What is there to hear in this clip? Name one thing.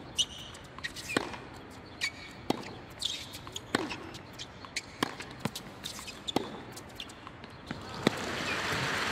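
Tennis balls are struck hard back and forth with sharp pops of a racket.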